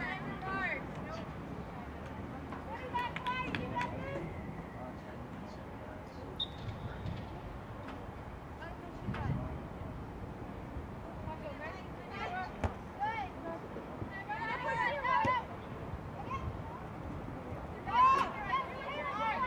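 Young women shout to each other across an open outdoor field.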